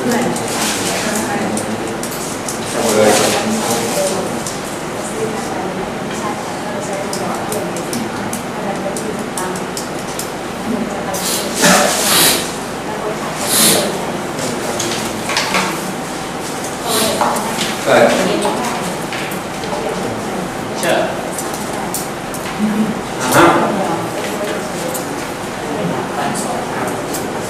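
An elderly man speaks calmly, as if teaching.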